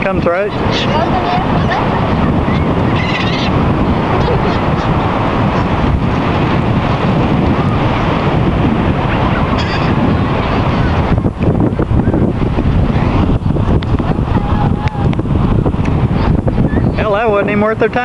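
Seagulls squawk and cry.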